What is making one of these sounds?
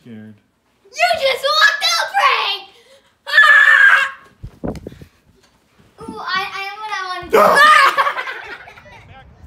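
A young child shouts and squeals excitedly close by.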